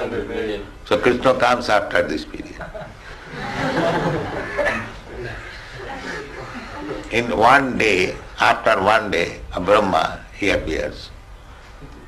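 An elderly man speaks slowly and expressively into a microphone.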